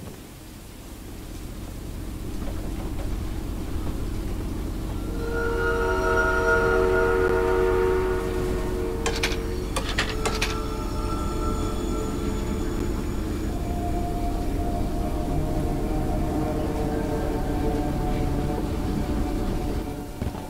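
A locomotive engine rumbles and builds up as the train gets moving.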